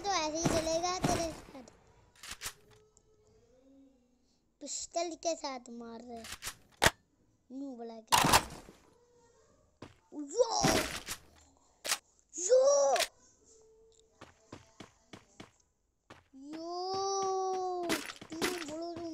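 A young boy talks excitedly close to a microphone.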